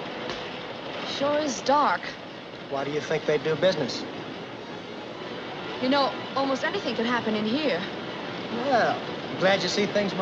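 A young woman laughs and talks excitedly close by.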